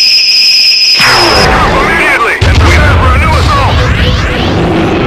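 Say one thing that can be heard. A giant monster roars and crashes to the ground.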